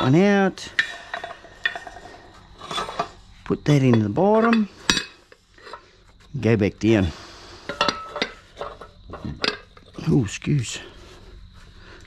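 Heavy metal plates clank and knock against a metal press.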